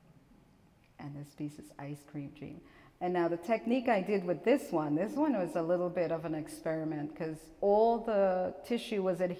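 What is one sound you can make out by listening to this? A woman speaks calmly through a microphone over loudspeakers in a room with some echo.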